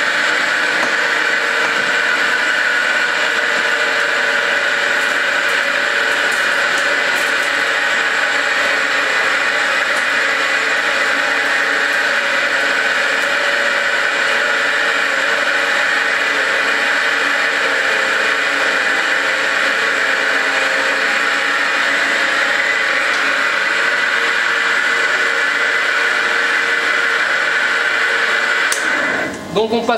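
A machine whirs and rattles steadily close by.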